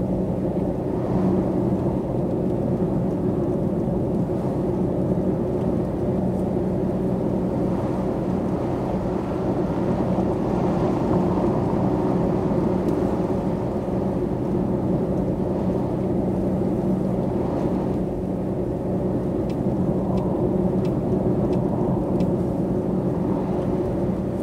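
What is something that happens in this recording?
A bus engine drones steadily at highway speed.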